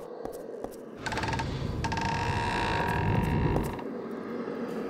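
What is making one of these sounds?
A heavy gate rumbles open.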